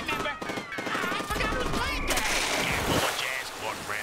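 Electric crackling bursts out loudly.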